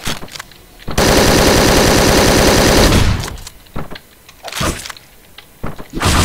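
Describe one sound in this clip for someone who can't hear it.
Gunshots bang in short bursts.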